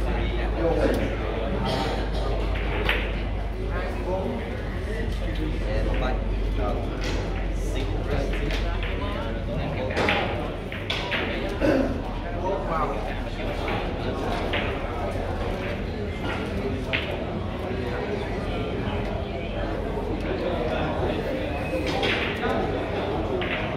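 A crowd of men chatters in a busy, echoing hall.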